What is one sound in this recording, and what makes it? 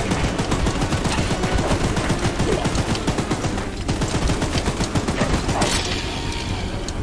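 A gun fires rapidly in bursts.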